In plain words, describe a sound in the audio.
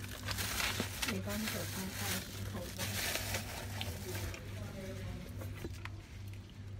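A young woman speaks softly close to the microphone.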